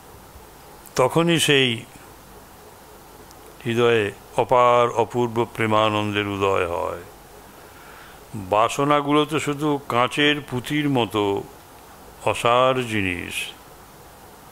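An elderly man speaks calmly into a microphone in short phrases with pauses.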